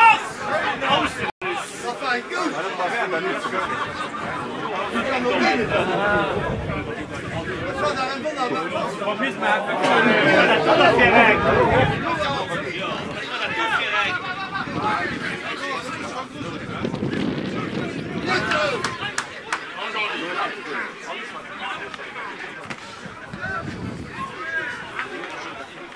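Football players shout to each other across an open field outdoors.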